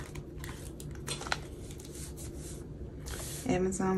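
Plastic sleeves of a binder crackle as they are flipped.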